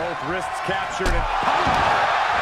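A body slams heavily onto a wrestling mat.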